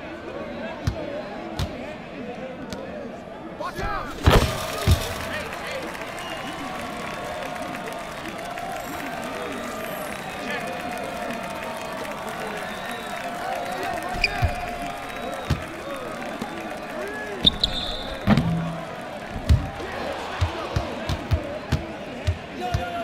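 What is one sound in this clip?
A basketball bounces on a wooden court with sharp thumps.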